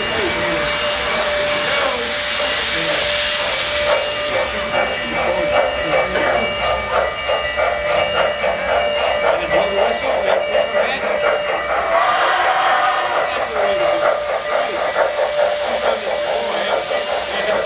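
A model train rolls and clatters along its track close by.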